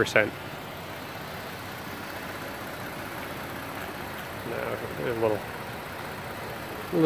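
A truck engine idles steadily nearby.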